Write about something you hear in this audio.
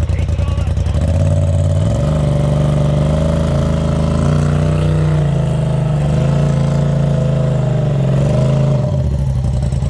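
An off-road vehicle's engine revs up and down.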